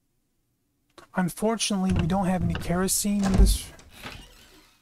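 A wooden door creaks slowly open.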